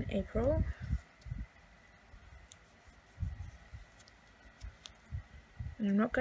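A hand brushes and taps across a paper page.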